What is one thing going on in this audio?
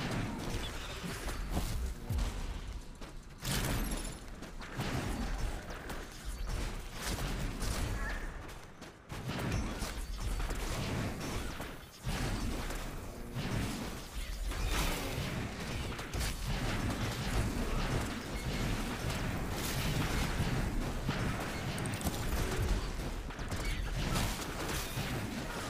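Magic blasts and clashing weapons crackle and thud in a game battle.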